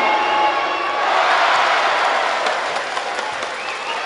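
A crowd bursts into a loud roar, then settles.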